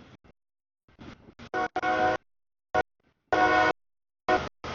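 A train horn blares loudly in short blasts.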